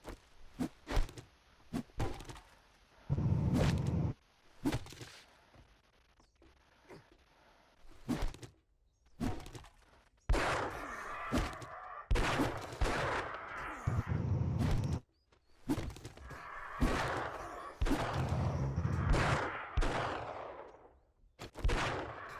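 An axe chops into wood with repeated sharp knocks.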